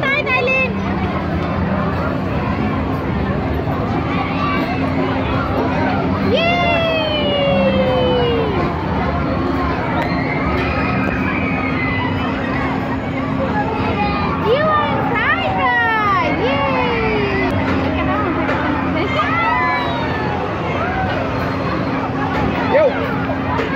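A ride's motor hums steadily.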